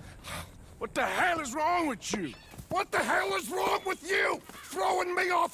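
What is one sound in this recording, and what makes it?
A man speaks gruffly, close by.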